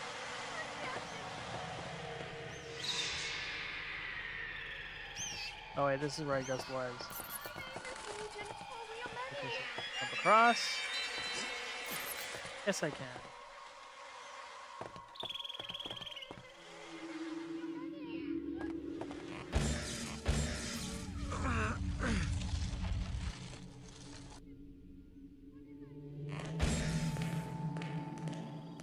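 Footsteps run across wooden floorboards.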